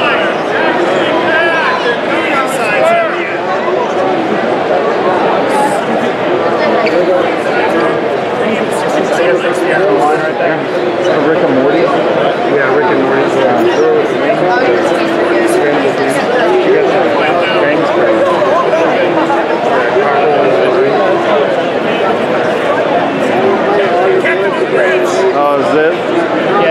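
A large crowd of men and women chatters all around in a big echoing hall.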